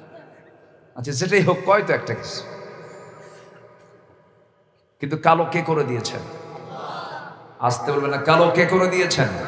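A man preaches with passion into a microphone, his voice loud over loudspeakers with a long echo.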